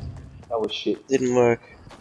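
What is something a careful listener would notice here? A pickaxe strikes with a sharp knock.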